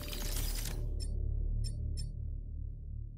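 Short soft clicks tick as menu items change.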